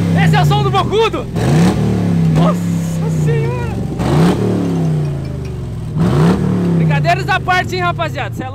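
A sports car engine rumbles and revs up in short bursts.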